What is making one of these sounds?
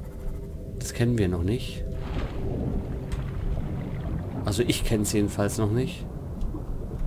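A young man speaks into a microphone in a calm, casual voice.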